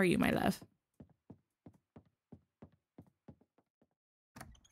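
Footsteps tap steadily across a wooden floor.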